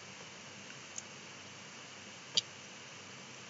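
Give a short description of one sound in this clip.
A computer mouse clicks sharply.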